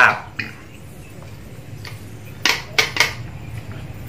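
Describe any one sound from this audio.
Liquid pours into a cup.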